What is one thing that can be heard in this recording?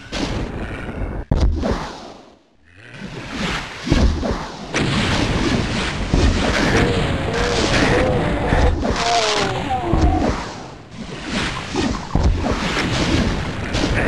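Monsters growl and snarl.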